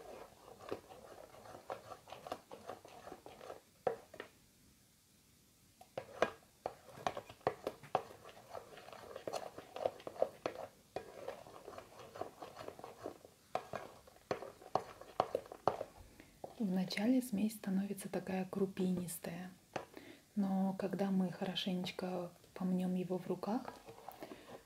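A plastic spoon stirs thick foam with soft, wet squishing and crackling.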